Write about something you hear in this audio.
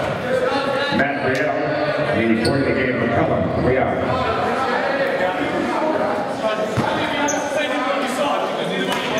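Spectators talk and chatter close by in an echoing gym.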